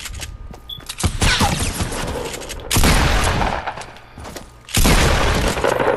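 Gunfire from a video game cracks in bursts.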